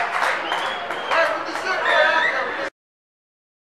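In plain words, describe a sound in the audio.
Spectators cheer and shout from the stands.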